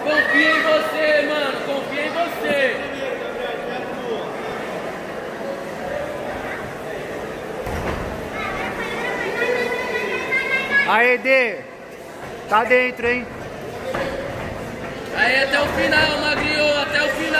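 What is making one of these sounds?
Spectators shout and cheer loudly in a crowd.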